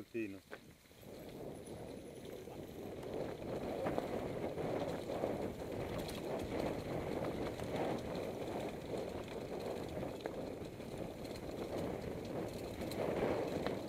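Bicycle tyres roll and crunch over a rough dirt trail.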